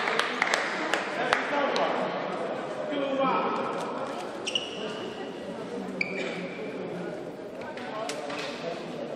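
Spectators murmur quietly in a large echoing hall.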